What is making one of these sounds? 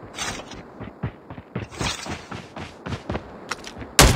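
A gun clicks and clatters as it is reloaded.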